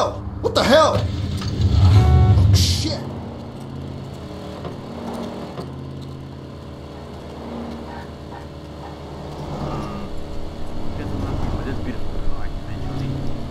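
A car engine rumbles steadily as it drives along.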